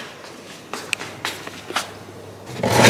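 Flip-flops slap on a hard floor.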